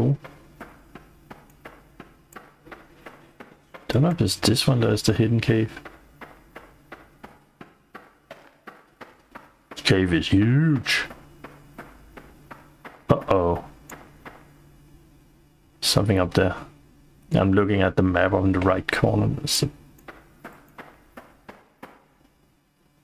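Footsteps tread at a walking pace.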